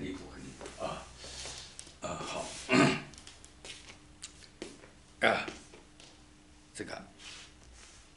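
Footsteps sound on a hard floor.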